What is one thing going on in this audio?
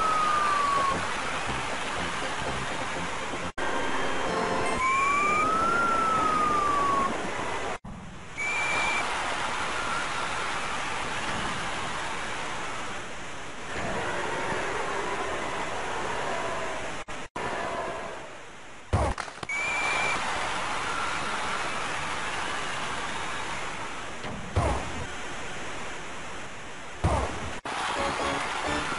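A crowd roars steadily.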